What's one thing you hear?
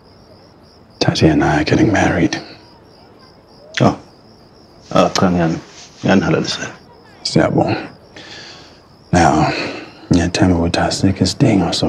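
A second man speaks firmly and calmly, close by.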